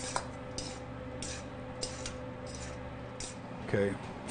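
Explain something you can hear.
Hands squish and mix a moist mixture in a metal bowl.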